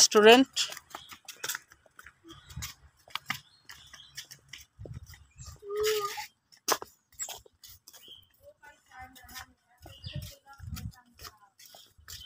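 Children's footsteps patter on a paved path.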